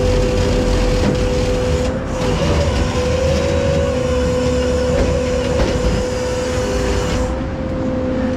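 A trailer rattles and hums as it is towed along the road.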